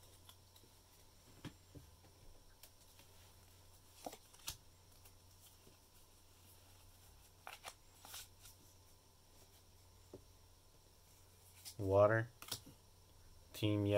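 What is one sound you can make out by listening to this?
Playing cards rustle and click softly as they are flipped through.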